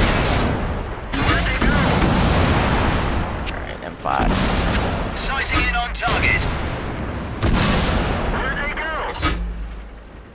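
Tank cannons fire with loud booming blasts.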